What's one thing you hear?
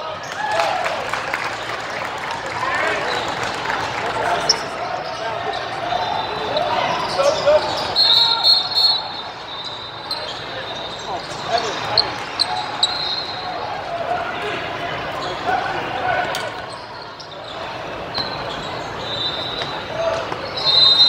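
Sneakers squeak sharply on a hard court, echoing in a large hall.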